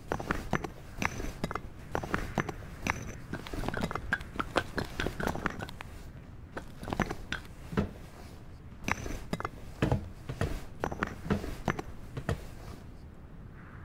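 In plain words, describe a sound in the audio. Footsteps scrape and clatter over loose stones and rubble.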